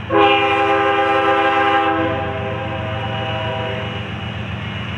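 A train horn blares loudly, then fades.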